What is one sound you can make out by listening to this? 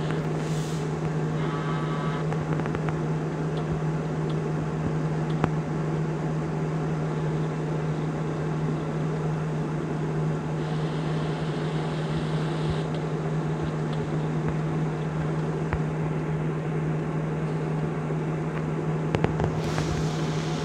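A semi truck engine drones steadily at low speed.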